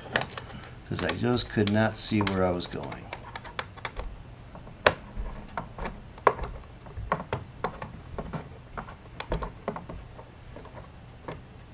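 Wooden parts click and knock as a man adjusts a spinning wheel.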